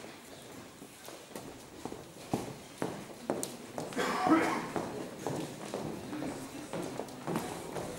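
Footsteps knock on a wooden stage.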